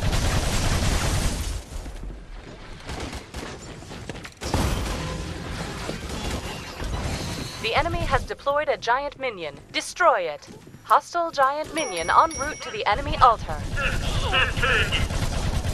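Rapid gunfire crackles and booms.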